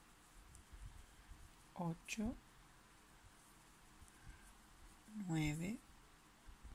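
A crochet hook softly rustles and clicks through yarn.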